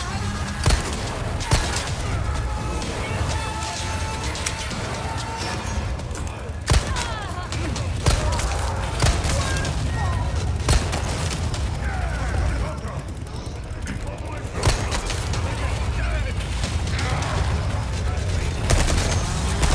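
Pistol shots ring out sharply, one at a time.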